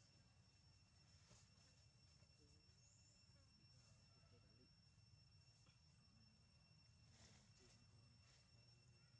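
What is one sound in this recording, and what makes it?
A monkey chews food with soft smacking sounds.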